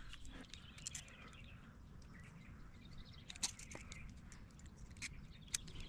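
Pliers click and snip on a thin metal band.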